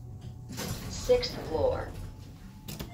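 An elevator chime rings on arrival.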